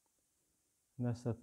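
A man begins to speak calmly and clearly, close by.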